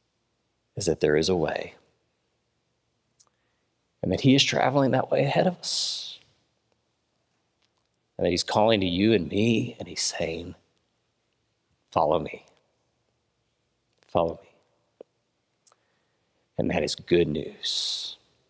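A young man speaks calmly into a headset microphone, in short phrases with pauses.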